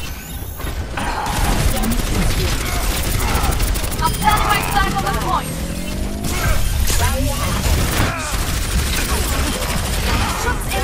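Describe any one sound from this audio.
Rapid gunfire and energy blasts crackle loudly from a video game.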